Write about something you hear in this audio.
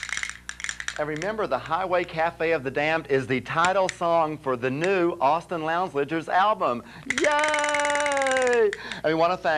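A man speaks theatrically and with animation into a microphone.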